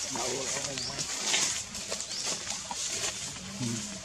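Dry leaves rustle as a small monkey scampers across the ground.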